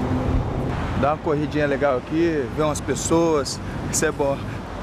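A young man speaks cheerfully and close by.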